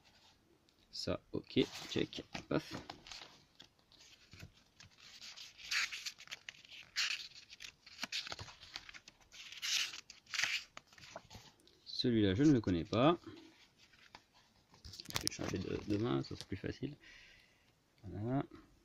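Paper pages rustle and flip as a book is leafed through.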